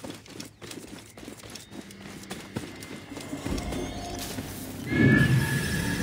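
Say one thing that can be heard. Grass and leaves rustle as someone pushes through them.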